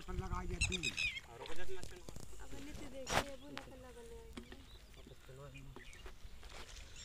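People talk nearby.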